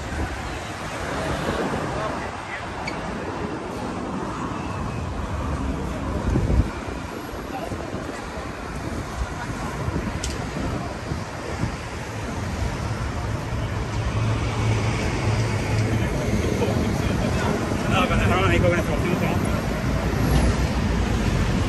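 Traffic rumbles past on a busy road outdoors.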